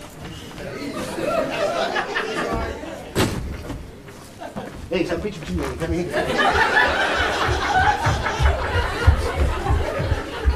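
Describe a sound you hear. A man talks loudly on a stage.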